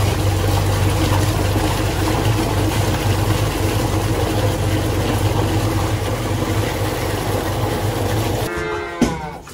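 A mixer motor hums and churns steadily.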